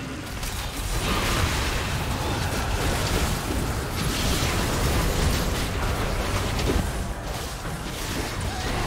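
Spell effects whoosh and blast in a game battle.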